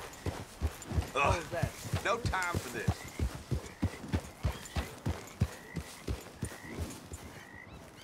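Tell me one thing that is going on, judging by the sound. Horse hooves thud rapidly on soft ground, then slow and stop.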